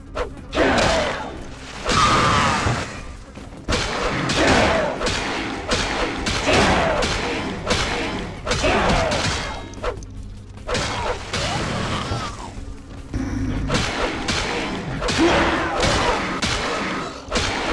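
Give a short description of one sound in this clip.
Blades slash and strike flesh in quick bursts.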